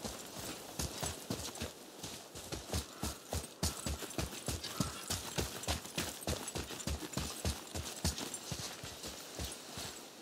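Heavy footsteps run quickly over grass and dirt.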